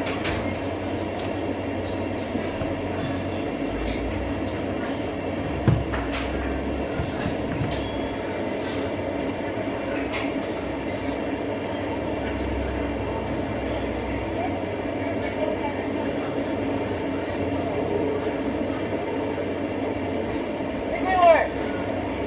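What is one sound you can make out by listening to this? A vehicle engine idles steadily nearby.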